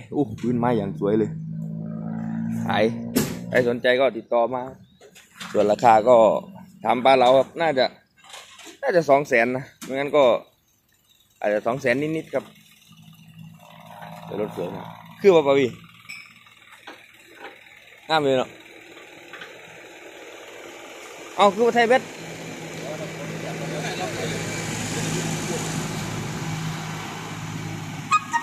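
A truck engine idles and rumbles.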